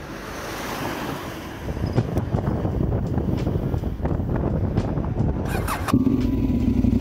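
Wind rushes past while the motorcycle is riding.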